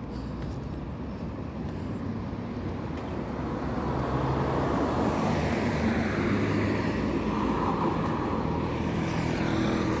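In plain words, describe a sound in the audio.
A car drives along a nearby road.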